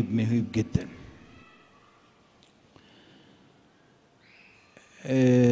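An elderly man speaks slowly and calmly into a microphone, with a slight echo in a large room.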